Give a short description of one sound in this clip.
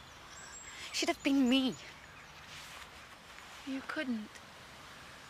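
A young woman speaks in a worried tone, close by.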